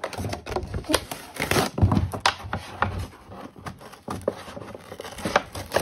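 Cardboard crinkles and scrapes as a box is handled.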